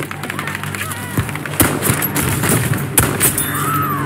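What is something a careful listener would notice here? A rifle fires a sharp, loud shot.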